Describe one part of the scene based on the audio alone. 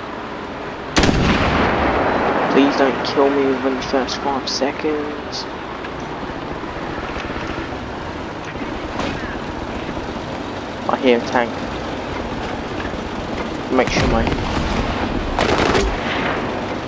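A tank cannon fires with loud booms.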